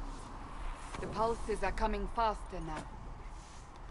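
A woman speaks softly and earnestly, close by.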